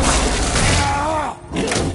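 A large creature runs forward with heavy thudding footsteps.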